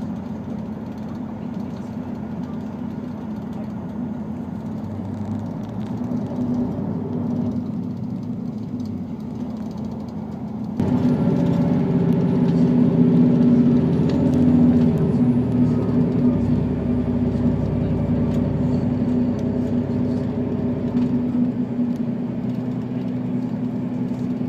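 Train wheels rumble and click on the rails.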